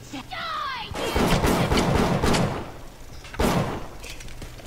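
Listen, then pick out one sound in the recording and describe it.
Pistol shots ring out in quick succession.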